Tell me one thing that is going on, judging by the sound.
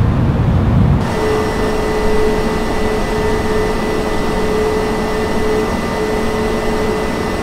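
The twin turbofan engines of an airliner whine and hum in flight.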